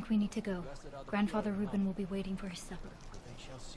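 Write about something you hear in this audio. A woman speaks softly and calmly close by.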